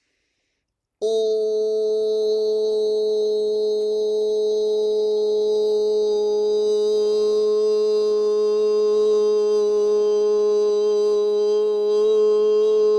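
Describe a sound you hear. A man chants a long, steady low note close to a microphone.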